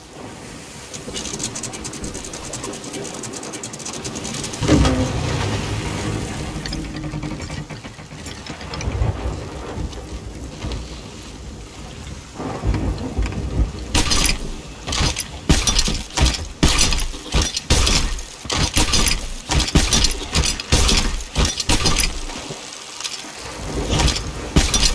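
Heavy rain patters down in strong wind.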